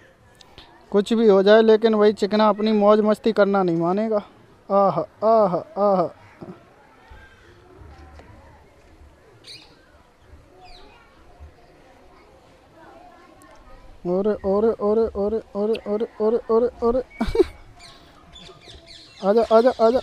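A baby monkey cries with loud, wavering squeals in bursts.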